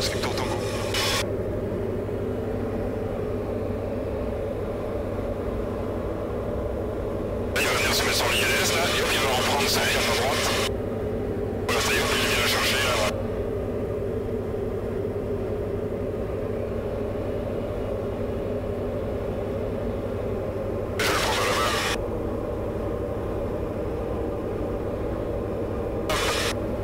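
A small plane's propeller engine drones steadily from inside the cabin.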